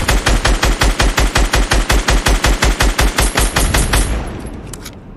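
A rifle fires rapid bursts in a video game.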